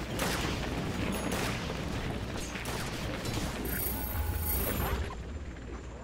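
Game spells and weapon clashes crackle and boom in a busy fight.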